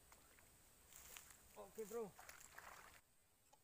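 A fishing rod swishes as it is cast.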